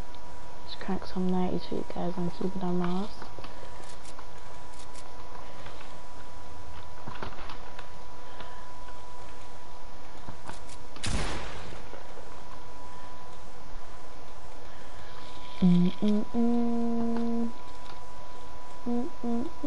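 Wooden building pieces snap into place with quick clatters.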